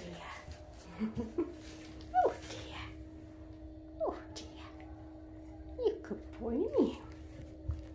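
A cat meows in short, rising and falling chirps, close by.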